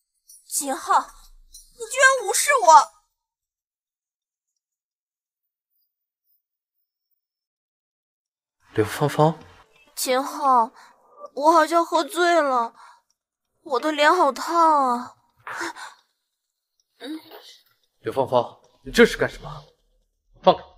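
A young woman speaks nearby in an upset, exasperated voice.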